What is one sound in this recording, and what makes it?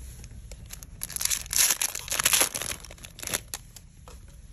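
A foil pack rips and rustles loudly as it is torn open.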